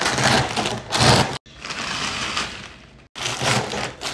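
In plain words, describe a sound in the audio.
A snack bag rustles and crackles under a hand.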